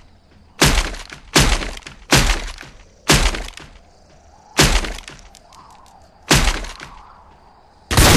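A shotgun fires loud, booming blasts again and again.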